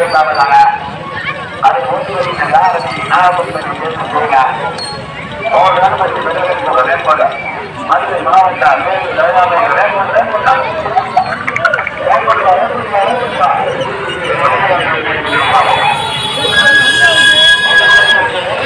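A crowd of men talks and shouts outdoors, close by.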